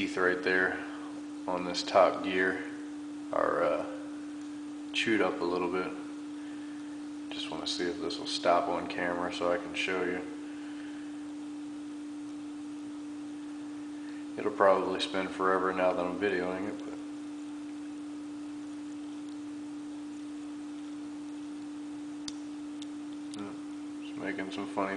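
A small electric motor hums steadily.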